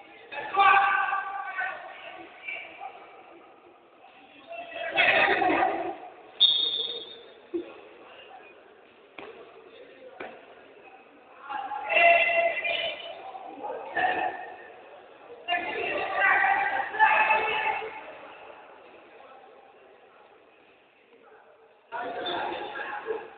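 Young players shout to each other in a large echoing hall.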